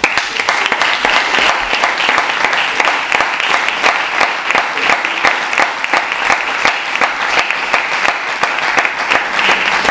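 An audience applauds steadily in a hall.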